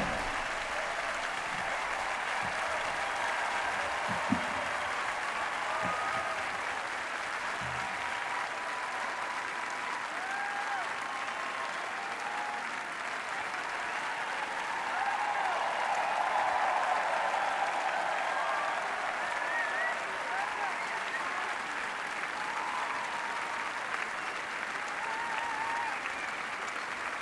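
A large crowd cheers and whistles outdoors.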